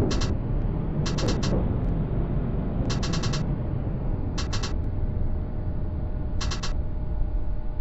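Tram wheels clack over rail joints.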